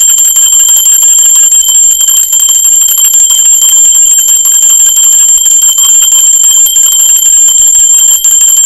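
A small brass bell rings steadily and rapidly close by.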